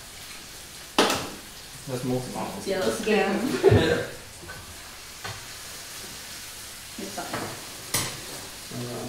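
Utensils clink and knock against dishes.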